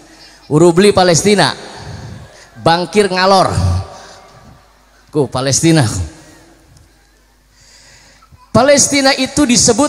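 A young man sings melodically into a microphone, heard through a loudspeaker with a slight echo.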